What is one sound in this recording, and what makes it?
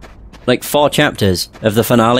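Footsteps run quickly across snow.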